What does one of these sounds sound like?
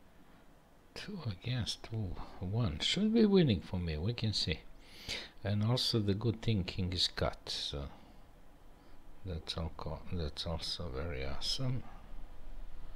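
A middle-aged man speaks calmly and thoughtfully into a close microphone, with pauses.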